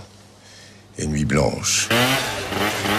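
An older man speaks calmly up close.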